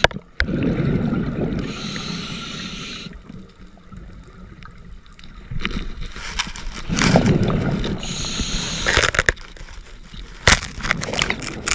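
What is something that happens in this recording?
Water gurgles and rushes in muffled bursts, heard underwater.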